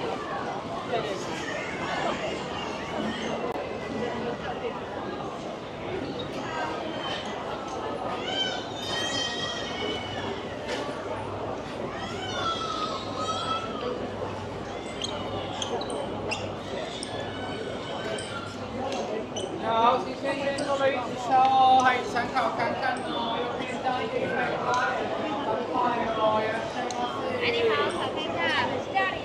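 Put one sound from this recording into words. Many people chatter and talk around, in a large busy indoor hall.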